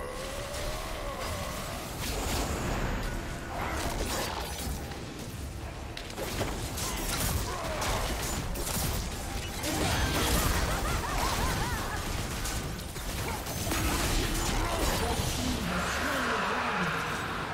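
Game spell effects and blows crackle and clash in a busy fight.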